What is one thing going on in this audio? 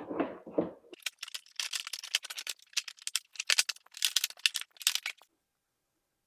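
A plastic body panel clicks and snaps into place.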